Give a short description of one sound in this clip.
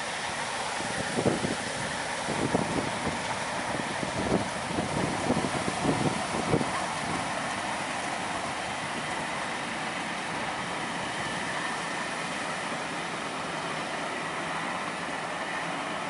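A train rumbles steadily past in the distance.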